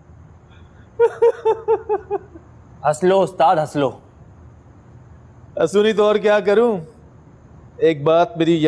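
A middle-aged man answers calmly nearby.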